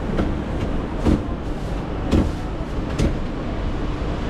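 A cleaver chops down hard on a board a few times.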